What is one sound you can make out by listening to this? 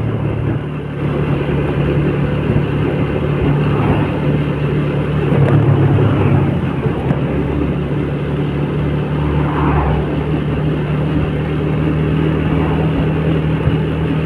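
A scooter engine hums steadily up close while riding.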